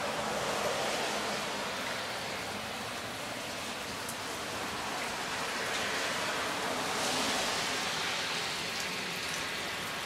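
Heavy rain pours steadily outdoors, pattering on a roof and ground.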